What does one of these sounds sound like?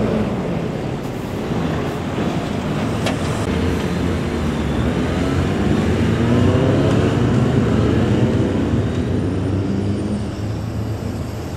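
Police motorcycles rumble past close by.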